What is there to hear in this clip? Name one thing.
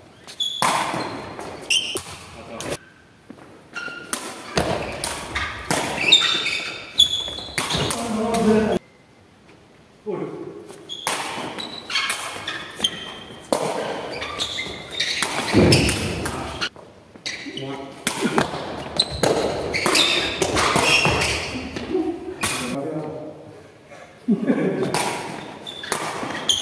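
Shuttlecocks are hit sharply with rackets in a large echoing hall.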